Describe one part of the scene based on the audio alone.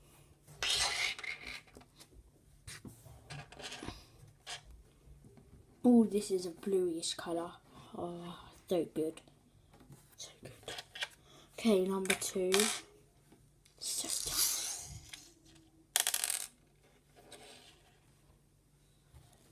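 A small rock clicks as it is set down on a hard tabletop.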